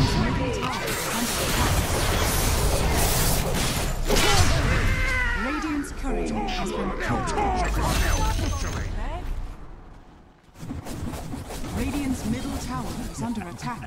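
Loud spell blasts and clashing battle effects crackle and boom.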